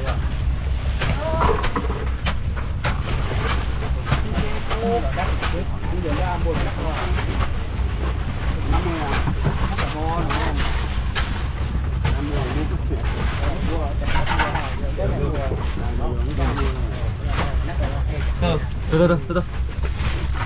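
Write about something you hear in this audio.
Men talk loudly nearby.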